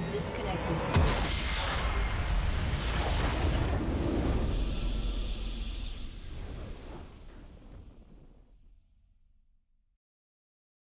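A triumphant game fanfare swells and slowly fades out.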